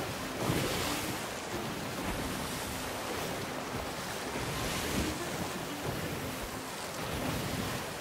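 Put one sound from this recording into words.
Wind blows strongly across open water.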